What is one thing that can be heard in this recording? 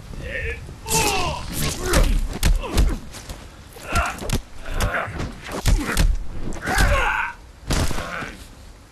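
Heavy punches and kicks land in a close fight.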